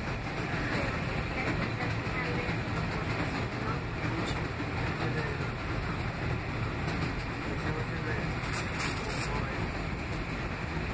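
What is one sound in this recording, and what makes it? A train rumbles steadily along elevated tracks, heard from inside a carriage.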